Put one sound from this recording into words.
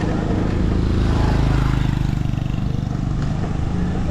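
A motorbike engine hums past.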